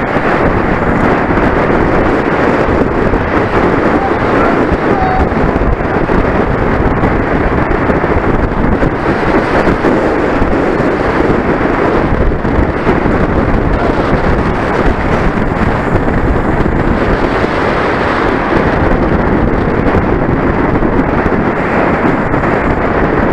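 Wind rushes hard and steadily past, as if heard while riding fast.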